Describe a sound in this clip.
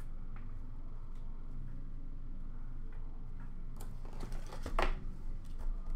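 Objects are set down with light taps on a glass counter.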